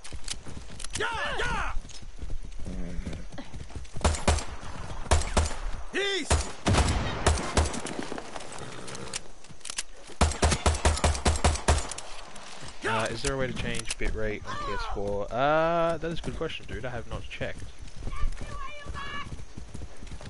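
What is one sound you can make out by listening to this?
A young man talks with animation through a headset microphone.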